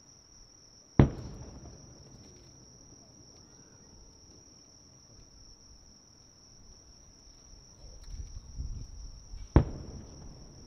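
Fireworks burst with loud booms that echo far across the night.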